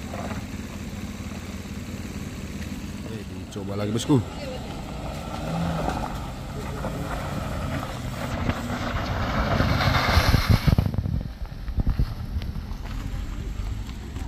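A car engine hums as the car drives slowly over a rough dirt road.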